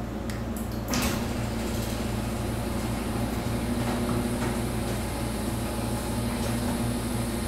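A garage door opener motor starts and hums steadily.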